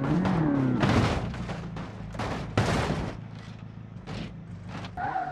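A bus crashes and tumbles with loud bangs.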